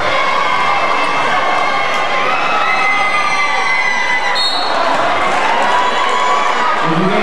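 Young men call out and talk in a large echoing hall.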